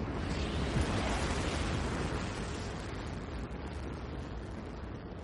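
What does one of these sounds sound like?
A tractor engine rumbles nearby.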